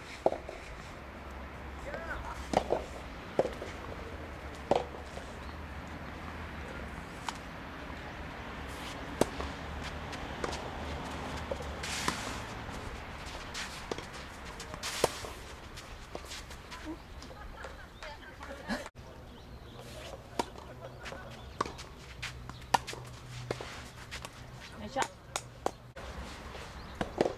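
Tennis balls are struck sharply with rackets, outdoors.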